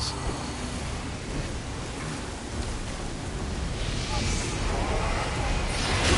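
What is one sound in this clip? Flames roar from a fiery blade.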